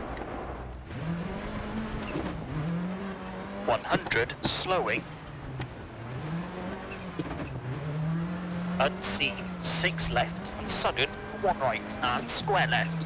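A rally car engine revs up and down as the car races along.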